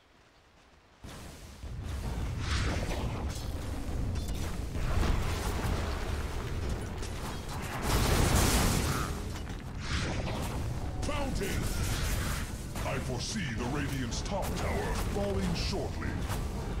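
Magic blasts and weapon clashes crackle and boom in a fast fight.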